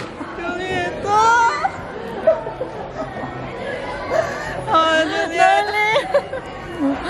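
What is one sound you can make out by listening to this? Young women laugh loudly and happily close by.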